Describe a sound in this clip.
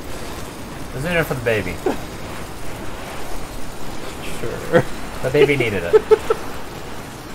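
A young man talks excitedly close to a microphone.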